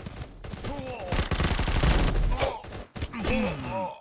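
An automatic rifle fires in rapid bursts in a shooting game.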